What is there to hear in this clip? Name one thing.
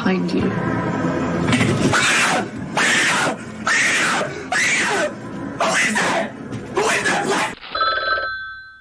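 A young man screams loudly through a microphone.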